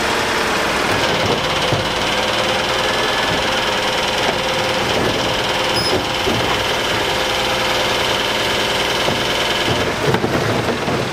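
A truck's hydraulic lifting arm whines as it raises and tips a bin.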